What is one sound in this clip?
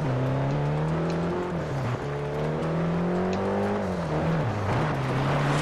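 A car engine roars and revs up and down through gear shifts.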